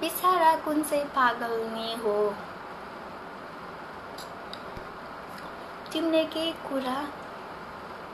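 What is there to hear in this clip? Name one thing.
A young woman speaks softly and close by, in short phrases with pauses.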